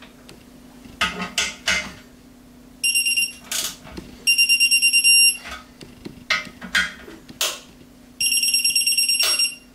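A ratchet wrench clicks in short bursts.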